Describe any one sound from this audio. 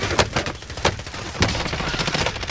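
Gunshots crack sharply in quick bursts.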